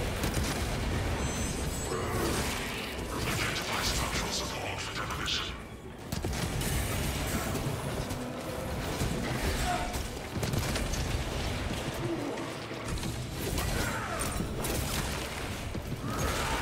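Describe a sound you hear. Blades clash and slash against armour.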